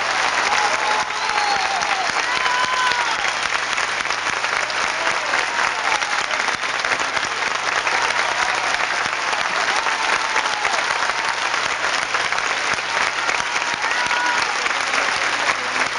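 A large audience applauds and cheers loudly.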